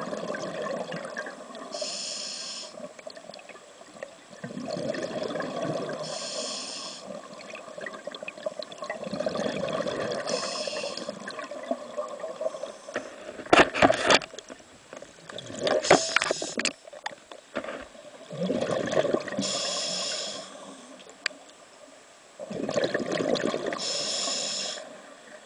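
A scuba diver breathes through a regulator with a rhythmic hiss.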